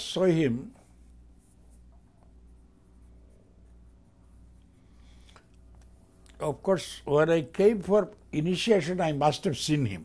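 An elderly man speaks calmly and close to a microphone, with long pauses.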